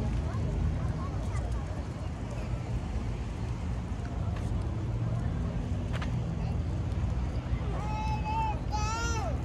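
People talk faintly in the distance outdoors.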